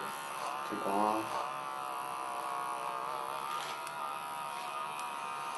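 An electric hair clipper buzzes as it cuts through short hair.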